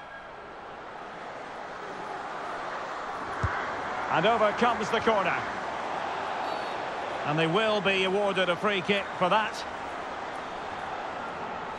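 A stadium crowd roars steadily, slowly growing louder.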